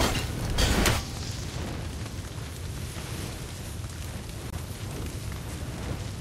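Flames crackle and roar steadily.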